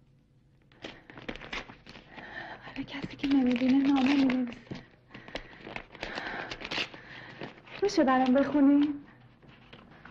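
A young woman reads out with feeling close by.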